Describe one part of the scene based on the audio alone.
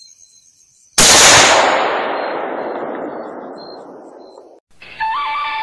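A rifle shot cracks loudly and echoes away.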